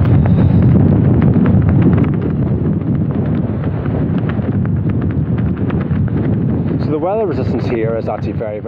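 Tent fabric flaps and rattles in the wind.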